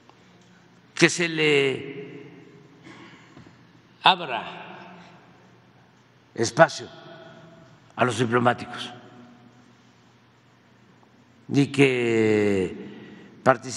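An elderly man speaks slowly and calmly into a microphone, with pauses between phrases, in a room that echoes slightly.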